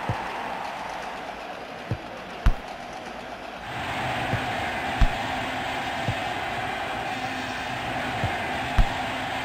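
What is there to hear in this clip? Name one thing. A stadium crowd roars in a video game.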